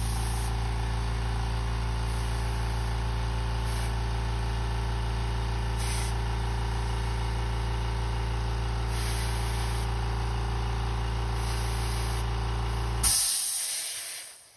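An airbrush hisses in short bursts of spraying air.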